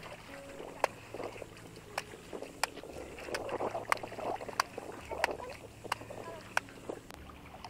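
A wooden paddle beats wet cloth with sharp slaps.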